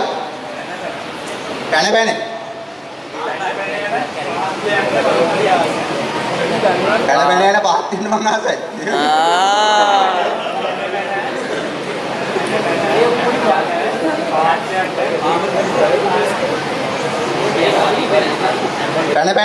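A young man talks with animation into a microphone, heard through loudspeakers in a large room.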